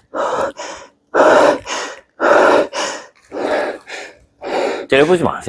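A young man pants heavily nearby.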